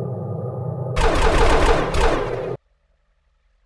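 A loud burst of a game's blast effect sounds from a phone.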